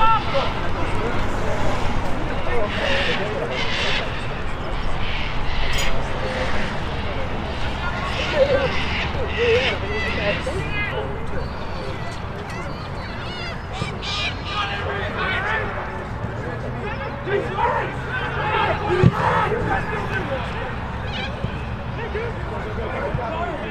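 Young players shout and call to each other across an open field in the distance.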